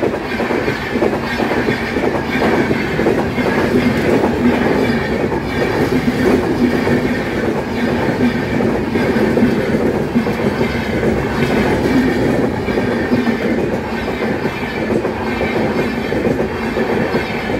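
A passenger train rumbles past close by, its wheels clattering rhythmically over the rails.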